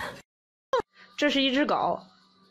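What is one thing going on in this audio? A dog whines close by.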